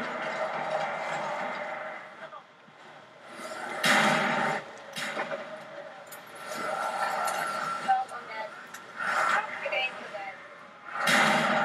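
Gunfire and explosions from a video game play through a television's speakers.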